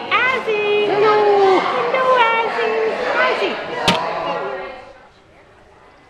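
A dog whines and yelps up close.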